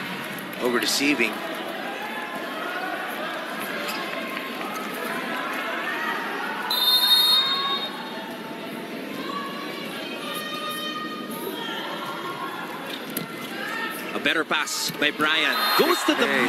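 A volleyball is struck hard.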